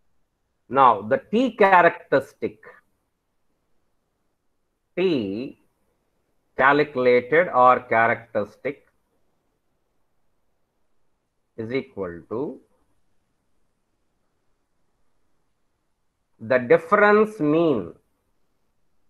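A man speaks calmly through an online call microphone, in short phrases with pauses.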